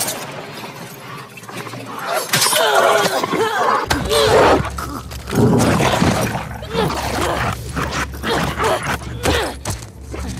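Blows thud in a scuffle.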